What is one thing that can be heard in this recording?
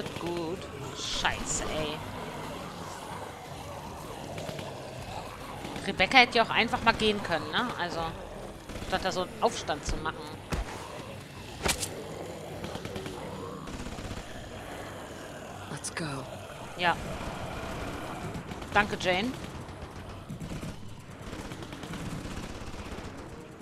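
Zombies groan and moan close by.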